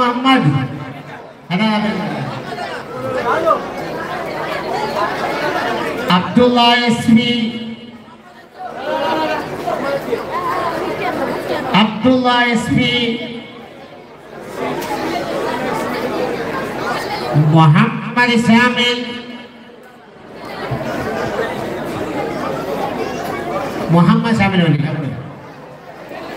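A man chants rhythmically through a loudspeaker outdoors.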